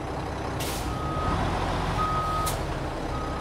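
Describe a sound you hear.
A truck's reversing alarm beeps.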